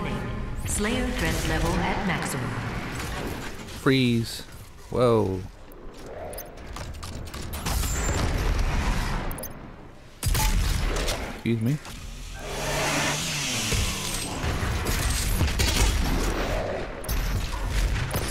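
A gun fires repeatedly with heavy blasts.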